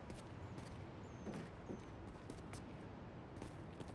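Footsteps tap lightly on a rooftop.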